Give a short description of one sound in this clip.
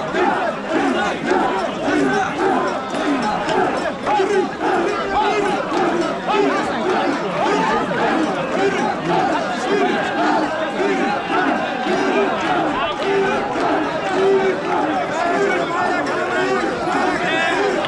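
A large crowd of men chants loudly in rhythm outdoors.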